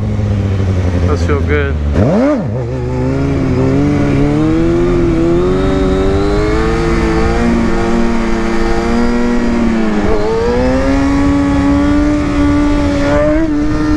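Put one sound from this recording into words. Wind rushes past loudly as a motorcycle rides.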